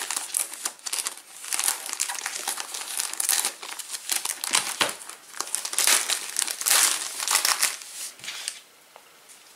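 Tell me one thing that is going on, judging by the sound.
A plastic foil wrapper crinkles and rustles as hands handle it.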